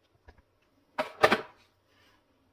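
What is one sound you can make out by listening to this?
A plastic phone case is set down with a light clatter.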